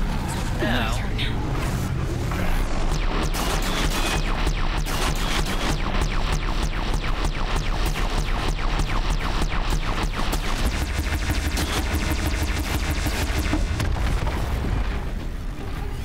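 A heavy cannon fires in a rapid, rattling stream of shots.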